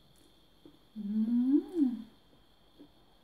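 A woman slurps noodles loudly.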